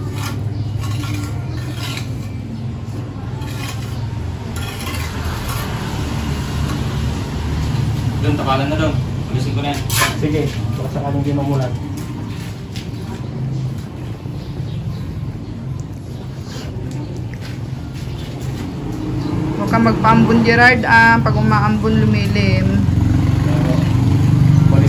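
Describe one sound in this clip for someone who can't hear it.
A trowel scrapes and taps on mortar.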